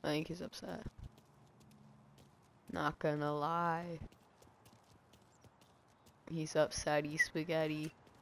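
Footsteps walk over hard ground.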